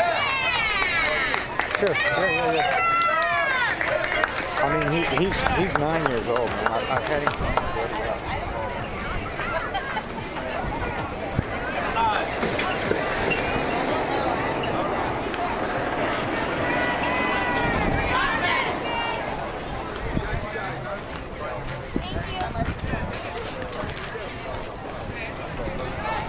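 Young ballplayers shout and call out across an open outdoor field.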